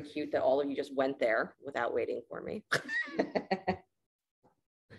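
A middle-aged woman talks with animation close to the microphone.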